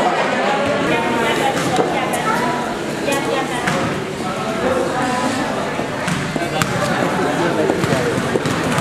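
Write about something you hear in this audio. A crowd of young men and women chatter in a large room.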